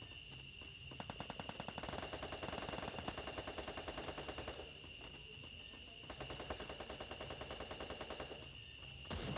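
Footsteps run quickly.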